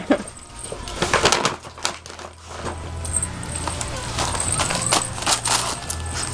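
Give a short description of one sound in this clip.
Wrapping paper rustles and crinkles as a dog tears at a gift.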